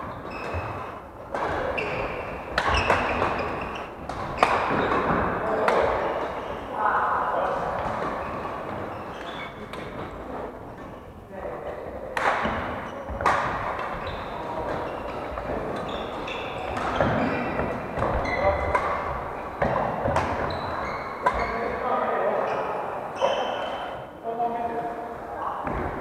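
Shoes squeak sharply on a wooden floor.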